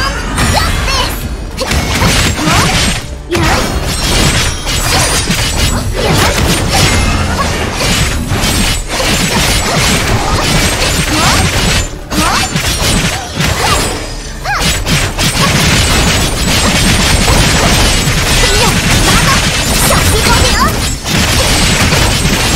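Loud magical blasts and sword strikes crash rapidly in a video game battle.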